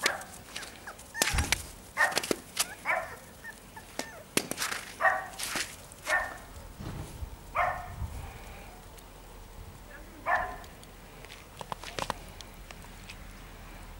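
Small dogs scamper through crunching snow.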